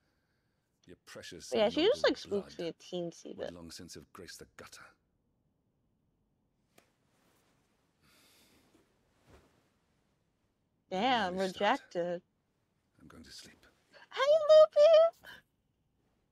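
A woman speaks calmly and coldly.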